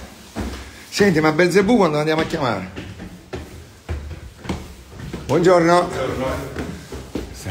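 An elderly man speaks loudly nearby.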